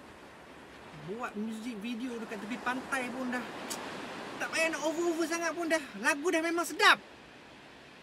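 A young man sings along loudly and with feeling, close by.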